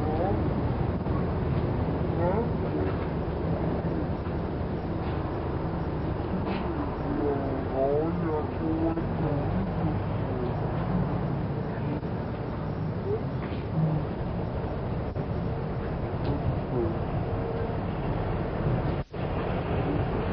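Young children talk and chatter close by, outdoors.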